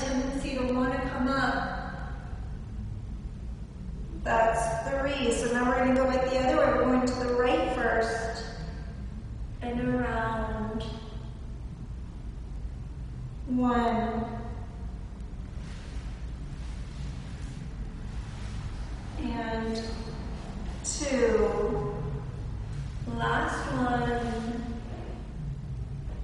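A young woman speaks calmly, giving instructions, close by.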